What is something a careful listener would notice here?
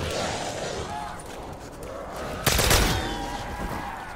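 A ray gun fires sharp blasts.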